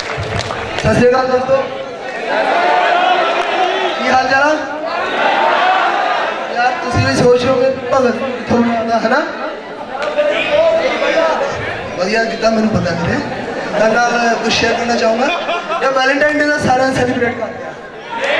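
A young man speaks with animation through a microphone over loudspeakers.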